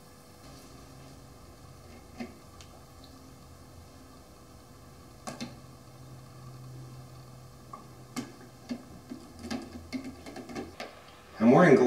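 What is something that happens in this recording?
Metal tweezers tap lightly against a plastic cup.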